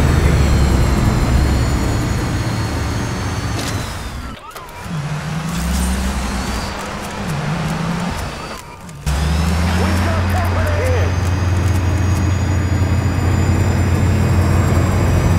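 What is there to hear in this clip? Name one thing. A helicopter engine whirs and drones steadily.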